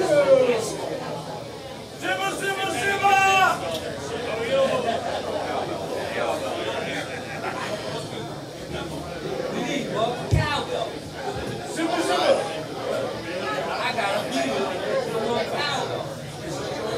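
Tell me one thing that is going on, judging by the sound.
A drum kit is played.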